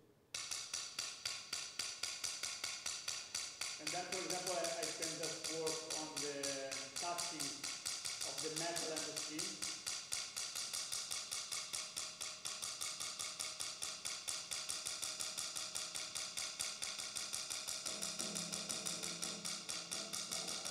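A stick beats rapidly and steadily on a small metal disc held over a drum, ringing with a bright shimmer.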